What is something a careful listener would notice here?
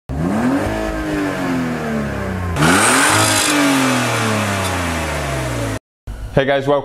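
A car engine revs up and falls back to idle.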